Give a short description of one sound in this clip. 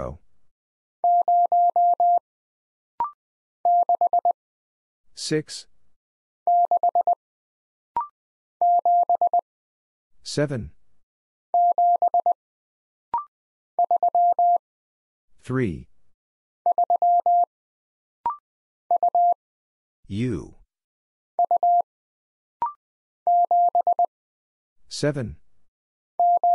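A telegraph key taps out steady, high beeping Morse code in quick bursts.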